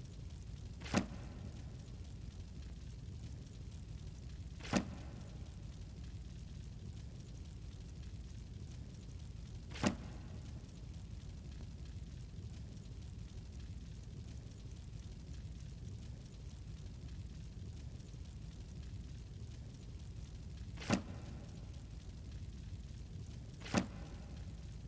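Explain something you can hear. A soft menu click sounds now and then.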